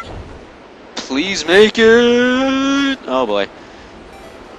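A bright electronic chime rings out and holds a tone, then breaks off.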